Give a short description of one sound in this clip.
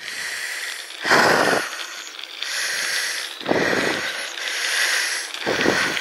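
Wind gusts buffet loudly outdoors.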